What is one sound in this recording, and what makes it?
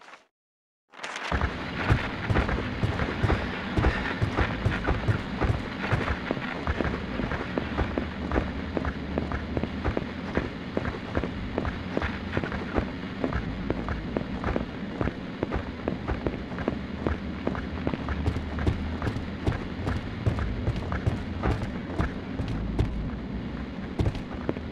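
Quick footsteps run on pavement.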